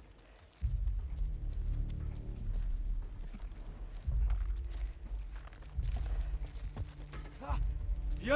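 Footsteps shuffle softly over a debris-strewn floor.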